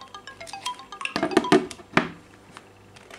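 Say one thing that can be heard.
A phone alarm rings with a chiming tune.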